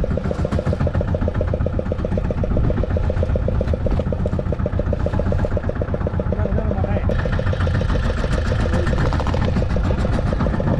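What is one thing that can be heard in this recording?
Waves splash against the side of a boat.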